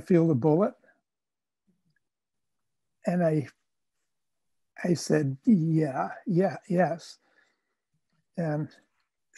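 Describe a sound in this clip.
An elderly man speaks calmly, with pauses, through a microphone on an online call.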